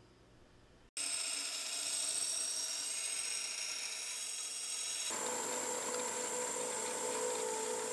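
A grinder belt rasps loudly against a steel blade, with a high hiss.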